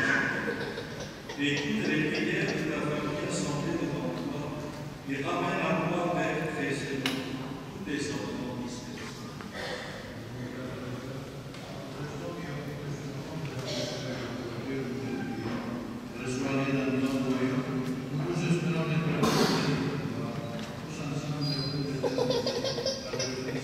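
A man chants a prayer through a microphone, echoing in a large hall.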